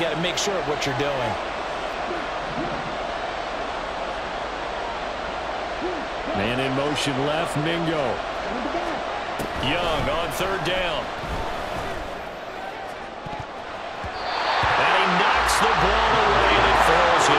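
A large stadium crowd murmurs steadily and then bursts into a loud roar.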